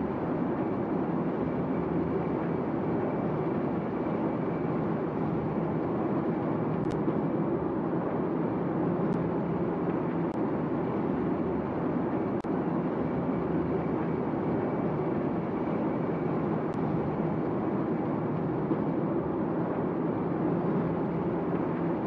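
Water rushes along a ship's hull.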